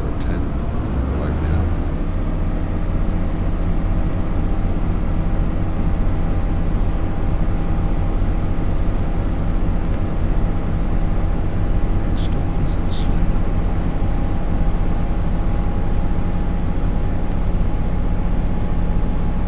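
A train's electric motor hums steadily as it speeds along the track.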